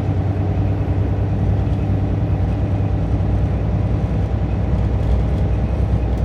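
A vehicle's engine hums steadily with a low rumble as it drives along a road.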